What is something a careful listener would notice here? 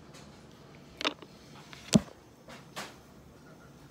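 Small plastic paint pots click and knock on a table.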